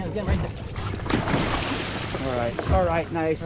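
Water splashes hard against a boat's hull.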